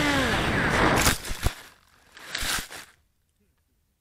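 A model plane crashes with loud thuds and rustles into plants.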